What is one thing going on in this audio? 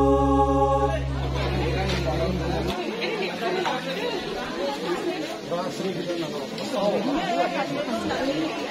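A crowd of people murmurs and chatters nearby outdoors.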